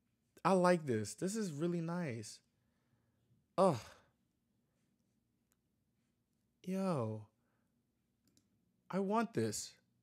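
A young man speaks with animation into a close microphone, in short bursts.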